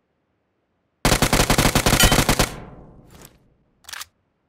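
A rifle fires a rapid burst of shots that echo away.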